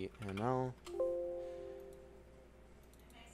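A computer alert chime sounds once and fades.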